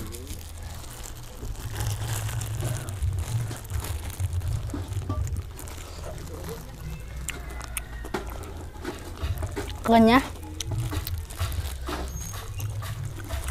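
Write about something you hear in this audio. A plastic bag crinkles and rustles in a boy's hands.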